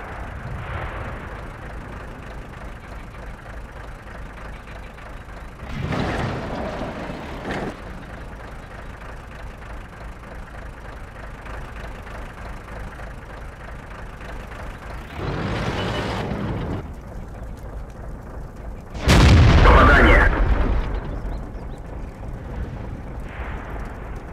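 A tank engine rumbles low and steadily.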